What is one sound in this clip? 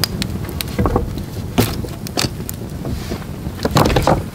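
A log knocks against stones as a man sets it on a fire.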